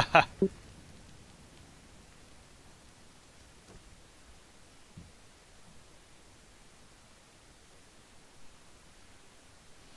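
A fire crackles softly nearby.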